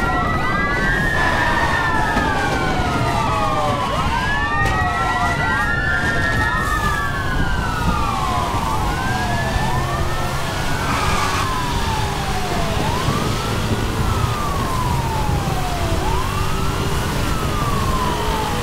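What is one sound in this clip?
A race car engine roars at high speed.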